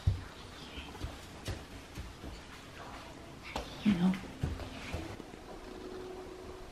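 A small child's bare feet patter on a wooden floor.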